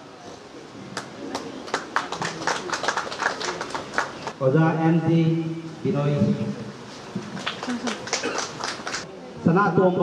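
Hands clap in a quick rhythm.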